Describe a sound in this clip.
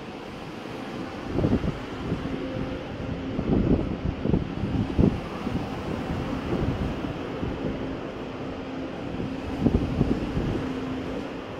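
A train rolls slowly past, its wheels clunking and thudding over the rail joints.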